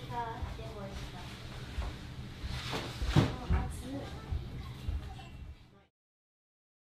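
A hammock frame creaks and thumps as a child climbs out.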